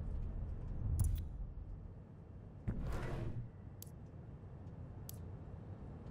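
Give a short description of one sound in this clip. Short soft clicks sound as menu items are selected.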